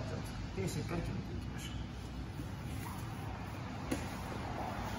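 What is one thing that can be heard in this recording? Bodies shift and rub on a padded mat.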